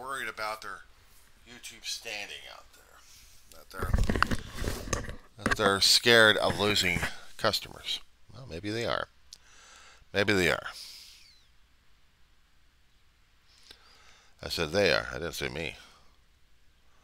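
A middle-aged man talks casually and close up, heard through a headset microphone.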